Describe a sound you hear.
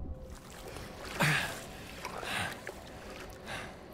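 Water splashes and sloshes as a swimmer surfaces.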